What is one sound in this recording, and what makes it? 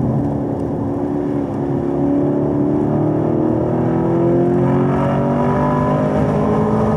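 A car engine revs loudly and rises steadily in pitch as the car speeds up.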